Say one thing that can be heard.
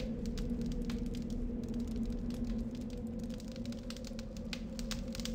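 A fire crackles and pops nearby.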